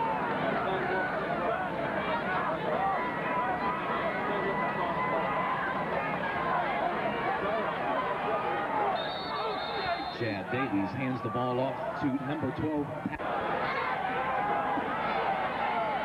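A large crowd of spectators cheers and chatters outdoors.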